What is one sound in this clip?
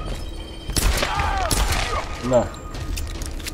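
A man cries out in pain up close.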